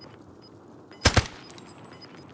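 Two gunshots fire in quick succession, loud and sharp.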